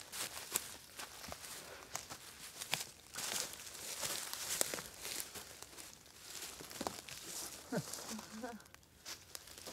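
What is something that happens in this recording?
Footsteps crunch on dry leaves and twigs.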